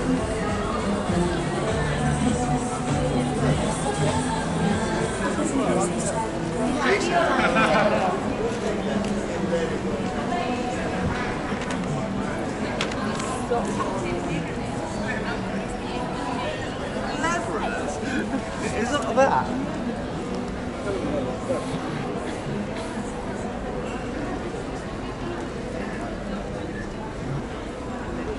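A crowd of people chatters and murmurs around outdoors.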